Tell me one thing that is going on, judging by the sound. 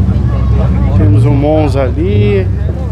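A man speaks close by in a lively voice.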